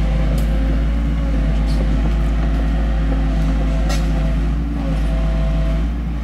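An excavator bucket scrapes and thuds into soil.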